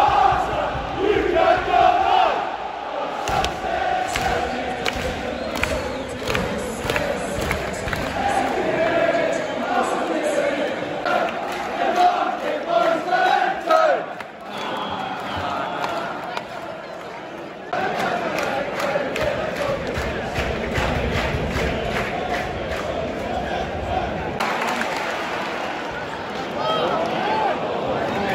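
A large stadium crowd murmurs and calls out in the open air.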